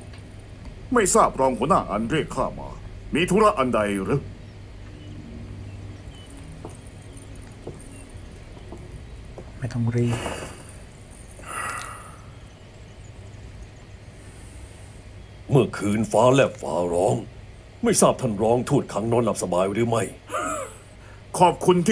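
A man speaks calmly.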